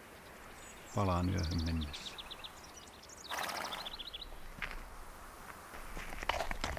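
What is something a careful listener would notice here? A man speaks quietly.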